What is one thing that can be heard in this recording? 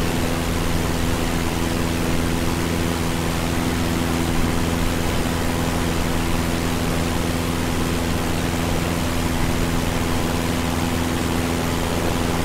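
A small propeller plane's engine drones steadily, close by.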